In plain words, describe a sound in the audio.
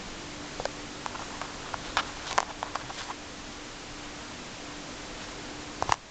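Fabric rustles softly as a hand handles it.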